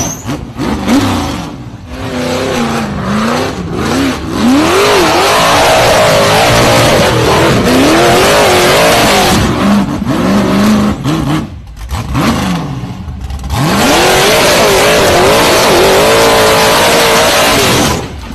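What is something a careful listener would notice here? An engine revs hard, rising and falling in pitch.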